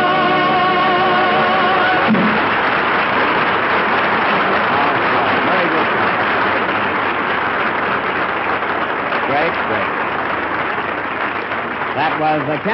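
A man speaks into an old microphone, heard through a loudspeaker.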